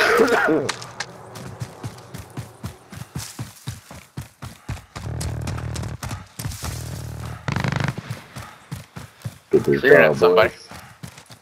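Quick footsteps thud across grass and dirt.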